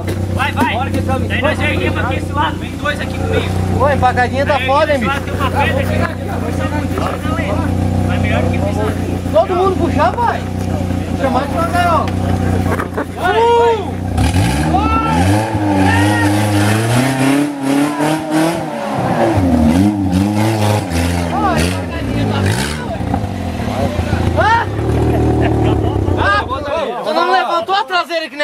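Men talk and call out loudly nearby outdoors.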